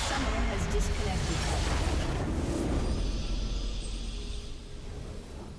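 A heavy magical blast booms and rumbles, then fades.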